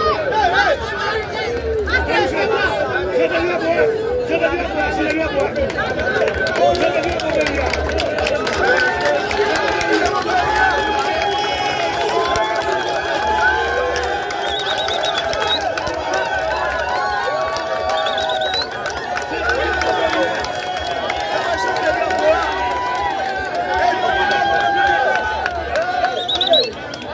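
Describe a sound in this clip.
A large crowd sings and chants loudly close by.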